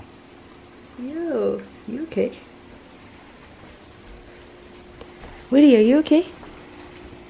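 A cat meows loudly several times, close by.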